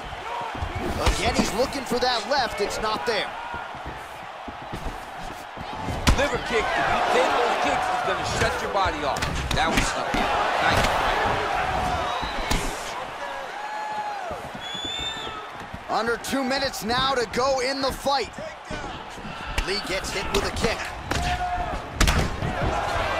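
Punches and kicks land with sharp thuds.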